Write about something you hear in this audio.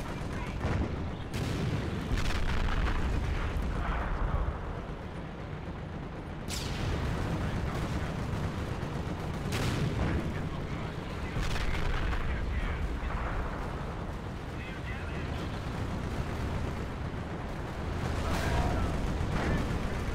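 Explosions boom and crack throughout a battle.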